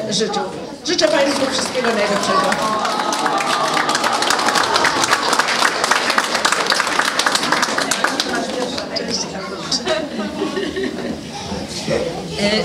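Women in a crowd talk and cheer excitedly.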